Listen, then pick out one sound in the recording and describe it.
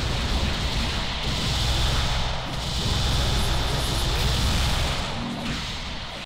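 Punches and kicks land with sharp impacts.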